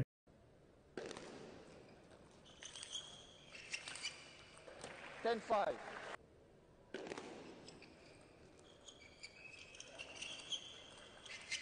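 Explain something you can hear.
Table tennis paddles strike a ball in a rally.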